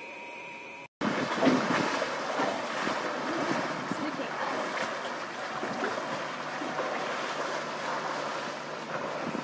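Elephants splash and wade through shallow water close by.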